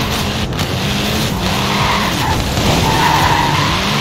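Tyres skid and scrabble over loose dirt.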